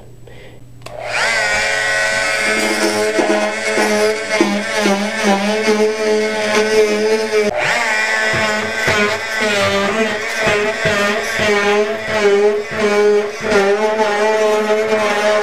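An oscillating power tool whines steadily as it cuts along a joint.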